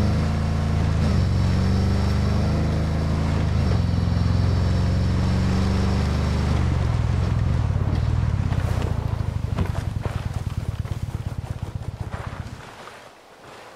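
A heavy vehicle engine rumbles loudly and then winds down.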